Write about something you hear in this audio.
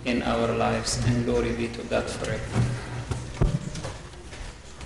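A middle-aged man chants in a singing voice through a microphone in an echoing hall.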